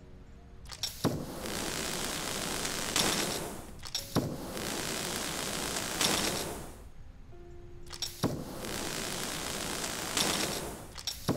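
A cutting tool hisses steadily against glass in long bursts.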